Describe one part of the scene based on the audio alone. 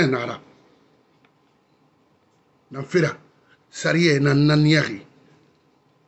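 A man speaks emphatically into a close microphone.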